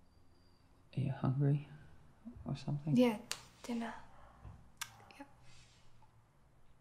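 A young man speaks softly and briefly nearby.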